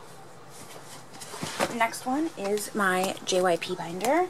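A plastic case clicks and rattles as hands handle it.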